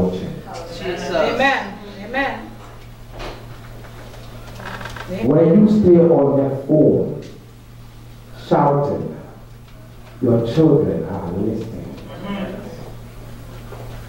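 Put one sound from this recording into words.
A man speaks through a microphone in bursts, with pauses between phrases.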